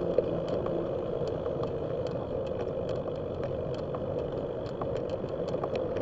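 Bicycle tyres roll over smooth pavement with light rattling clicks.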